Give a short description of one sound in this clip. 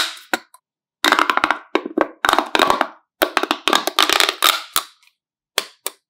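A plastic pop tube crackles and pops as it is stretched and bent.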